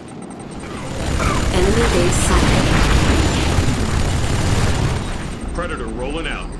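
Explosions and gunfire rumble in a battle.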